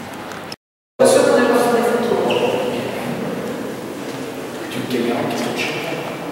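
A man talks quietly in a large echoing hall.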